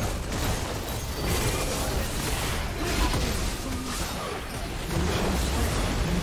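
Magic blasts and sword hits clash in a busy video game battle.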